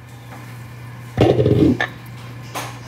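A metal spoon scrapes and swirls briskly in a bowl of liquid.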